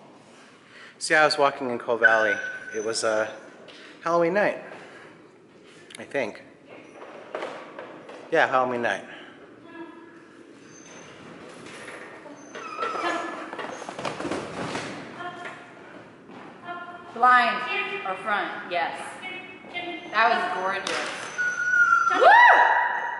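A woman calls out to a dog with animation.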